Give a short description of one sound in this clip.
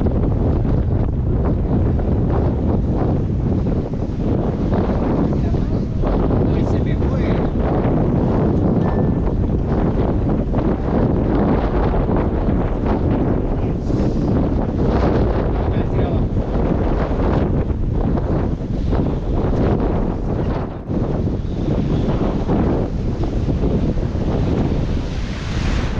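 Waves splash against rocks nearby.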